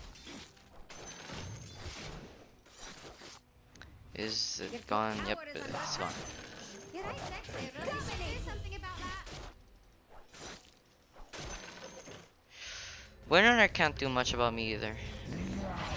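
Swords clash and magic spells crackle in a fantasy video game battle.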